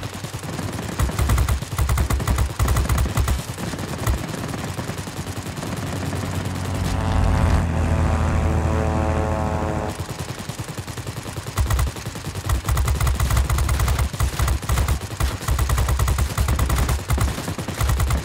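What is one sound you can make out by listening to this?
Machine guns fire in rapid bursts.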